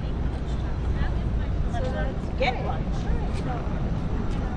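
People chatter at a distance outdoors.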